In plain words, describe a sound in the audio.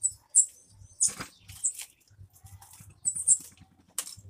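Footsteps shuffle close by on a hard floor.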